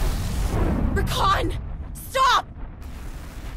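A woman shouts sharply.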